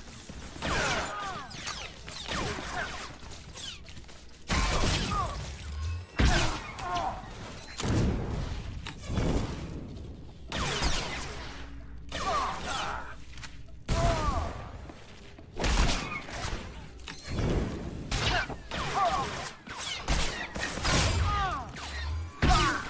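Blaster shots fire and energy blasts crackle in a fight.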